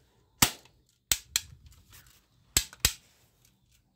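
Plastic toy guns click and clack sharply as they are handled.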